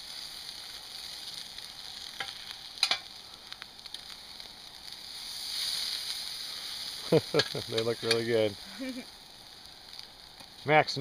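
Meat sizzles on a wire grill over an open wood fire.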